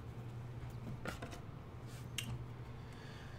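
Cards tap softly as a hand places one onto a stack.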